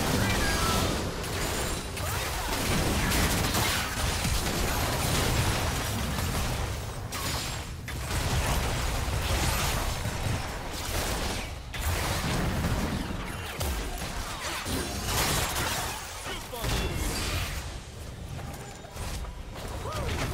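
Magical blasts and spell effects crackle and boom in quick succession.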